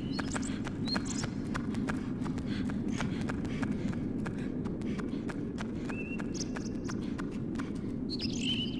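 Footsteps patter quickly on a wooden walkway.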